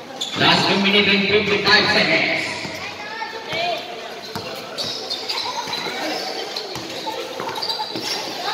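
A crowd of spectators cheers and shouts in an echoing hall.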